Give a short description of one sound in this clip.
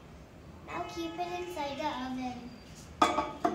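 A young girl speaks close by in a high, singsong voice.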